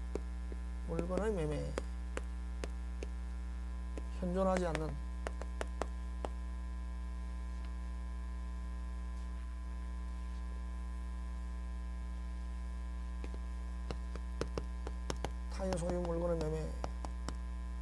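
A man speaks in short phrases through a microphone.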